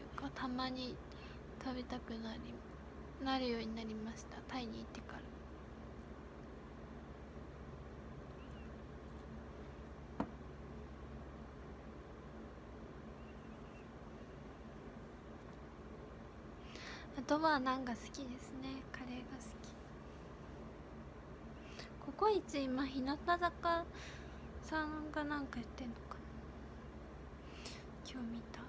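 A young woman speaks softly and casually, close to a microphone, with pauses.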